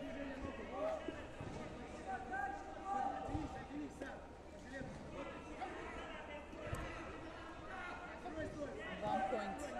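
Voices of a crowd shout and cheer in a large echoing hall.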